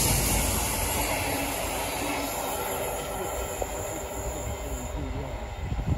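Freight wagons clatter over the rails.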